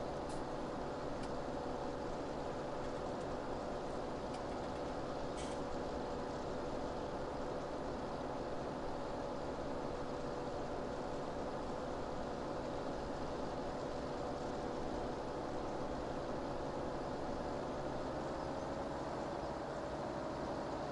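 A tractor engine hums steadily, rising slightly in pitch near the end.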